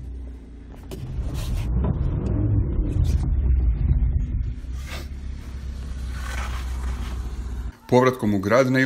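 A car engine hums as the car drives slowly past on snow.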